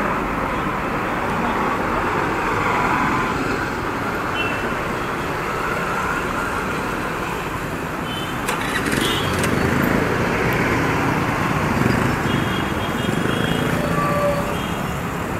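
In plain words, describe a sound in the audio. Traffic rumbles and passes on a busy road at night.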